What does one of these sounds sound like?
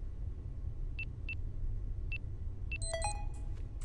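A keypad beeps as buttons are pressed.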